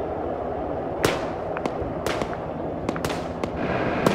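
Rifle shots crack nearby, one at a time.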